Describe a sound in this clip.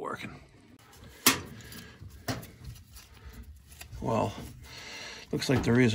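A metal valve knocks and scrapes as it is twisted loose by hand.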